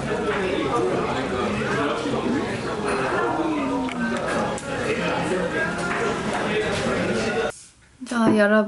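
A young woman talks animatedly close up.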